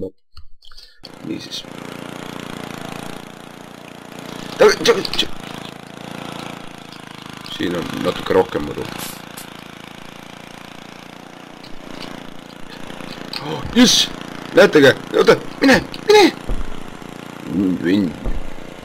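A small mower engine hums steadily.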